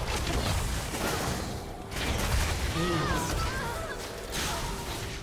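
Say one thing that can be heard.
Game spell effects crackle and whoosh in a fight.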